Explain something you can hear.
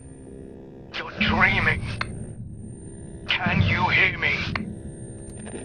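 A man's voice calls out through a crackling radio speaker.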